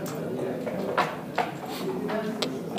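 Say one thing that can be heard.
Backgammon checkers click against a wooden board.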